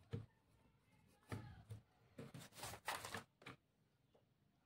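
A hand brushes across a sheet of paper.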